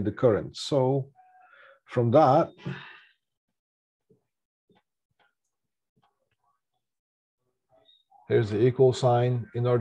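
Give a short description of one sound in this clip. A man speaks calmly and clearly into a close microphone, pausing between phrases.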